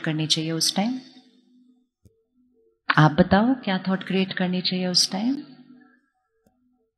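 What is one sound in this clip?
A woman speaks calmly into a microphone in short phrases.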